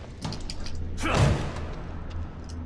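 A heavy metal door bangs open.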